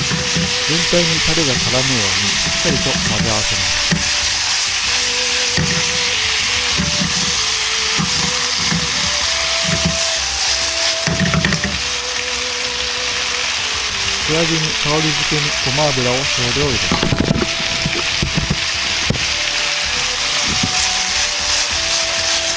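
Chopsticks scrape and clatter against a pan as food is stirred.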